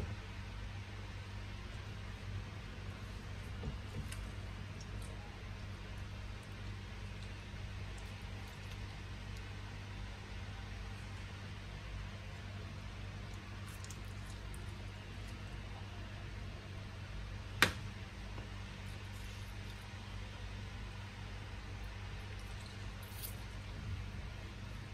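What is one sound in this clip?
A lime is twisted and squeezed on a plastic citrus juicer, squelching softly.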